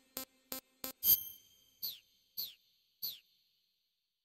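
A louder electronic chime sounds as a menu option is selected.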